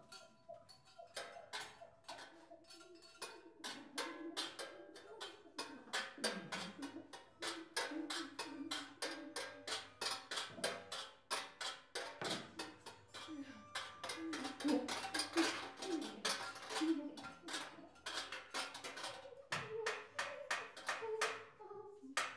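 Small mechanical hammers strike metal bowls in a fast, clattering rhythm.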